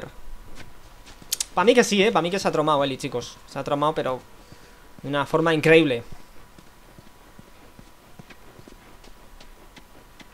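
Footsteps walk over grass and pavement at a steady pace.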